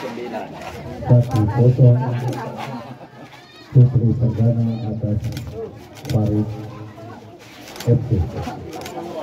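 A man talks loudly and with animation close by.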